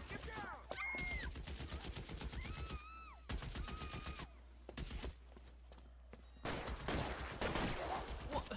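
Rapid gunshots crack and echo outdoors.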